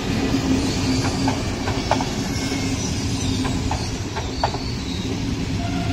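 A diesel locomotive engine hums at idle.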